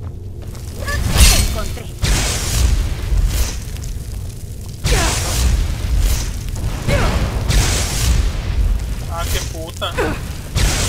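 Electricity crackles and zaps in bursts.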